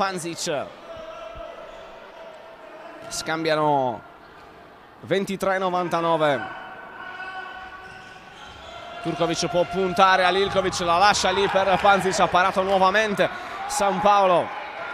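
A ball bounces on a hard floor in an echoing hall.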